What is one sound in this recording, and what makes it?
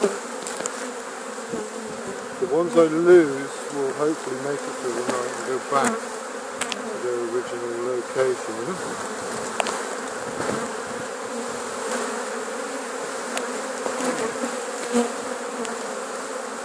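A cloth sheet rustles as it is shaken.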